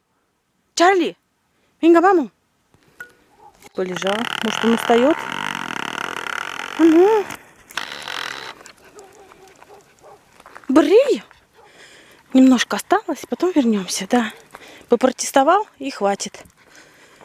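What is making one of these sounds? A small dog yelps and barks excitedly close by.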